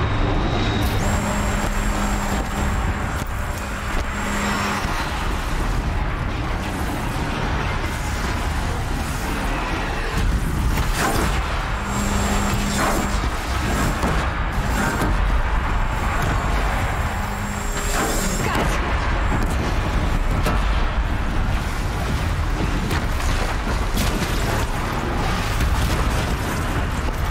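A large machine creature roars and stomps heavily.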